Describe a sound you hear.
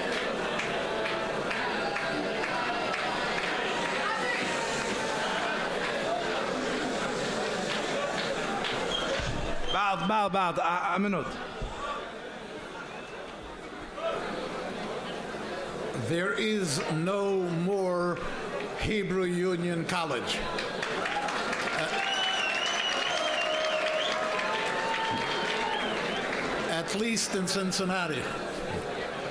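An elderly man speaks calmly through a microphone and loudspeaker in an echoing hall.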